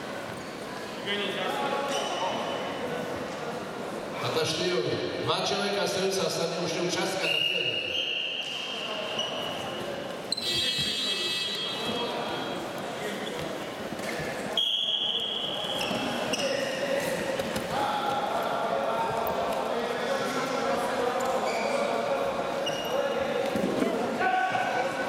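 Spectators talk and shout in a large echoing hall.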